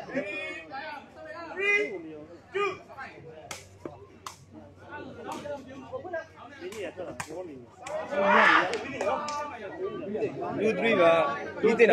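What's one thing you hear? A crowd of young men talks and shouts excitedly outdoors.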